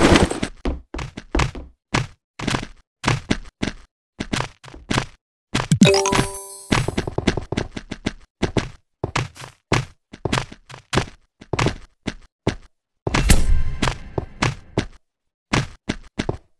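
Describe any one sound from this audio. Game blocks click quickly and repeatedly as they are placed one after another.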